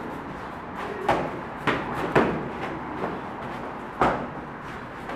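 Kicks and punches thud sharply against a body.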